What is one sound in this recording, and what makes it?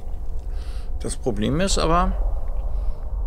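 A young woman speaks briefly and with animation into a close microphone.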